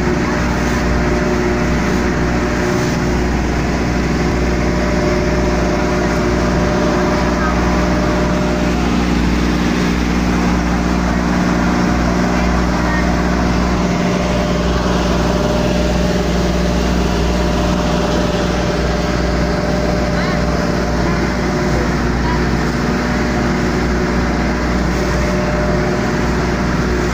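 Water rushes against a moving boat's hull.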